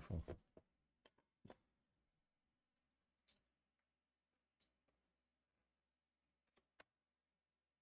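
Small plastic parts click softly as a cable connector is handled.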